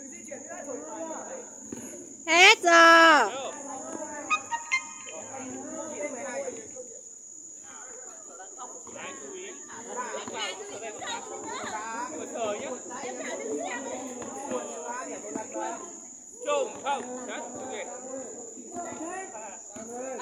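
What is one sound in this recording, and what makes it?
Young people chatter nearby, outdoors.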